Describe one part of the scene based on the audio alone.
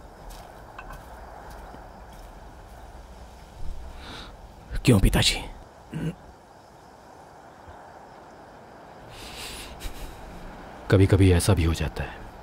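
An older man speaks in a low voice.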